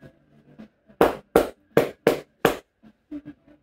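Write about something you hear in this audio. A barber's hands slap rhythmically on a head.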